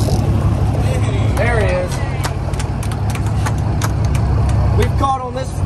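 A young woman laughs and exclaims nearby.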